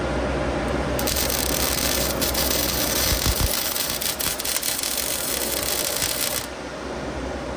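An electric welder crackles and sizzles steadily close by.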